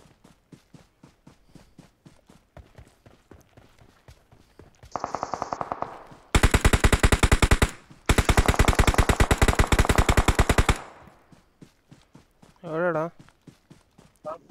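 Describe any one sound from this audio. Quick footsteps run over grass and dirt.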